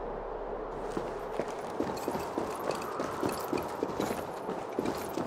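Footsteps thud quickly on stone.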